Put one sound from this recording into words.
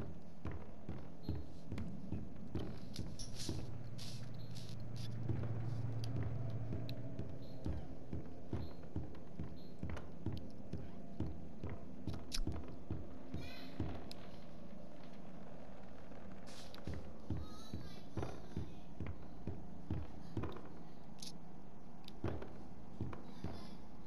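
Footsteps thud on wooden stairs and floorboards at a steady walking pace.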